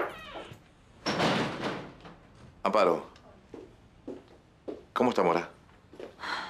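A middle-aged woman speaks with surprise nearby.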